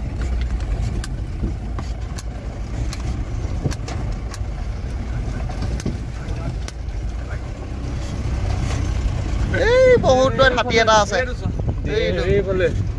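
A vehicle engine rumbles steadily while driving.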